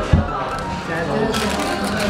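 A paper wrapper rustles.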